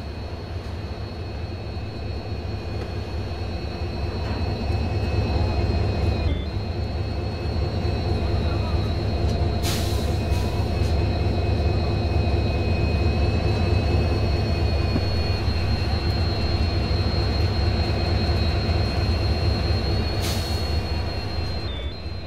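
Train wheels clatter over the rails.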